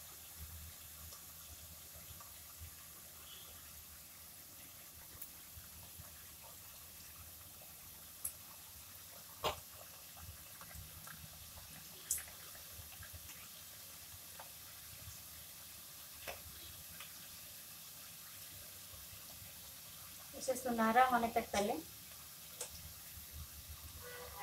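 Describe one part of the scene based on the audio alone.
A metal spatula scrapes and clinks against a metal pan.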